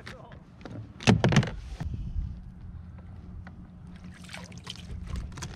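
A fish splashes in the water beside a boat.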